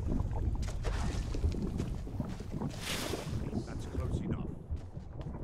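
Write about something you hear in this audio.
A magic spell crackles and hisses.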